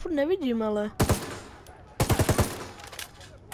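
A rifle fires several quick, loud shots.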